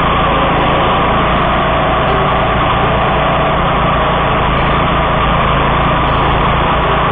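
Tall grass swishes and is chopped under the mower's blade.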